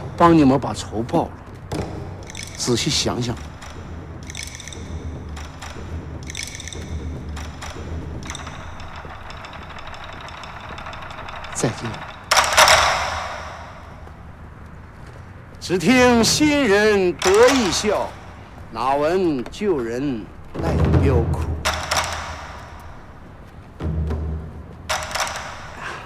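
A middle-aged man speaks close by with animation.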